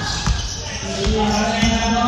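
A basketball bounces on a wooden floor in an echoing hall.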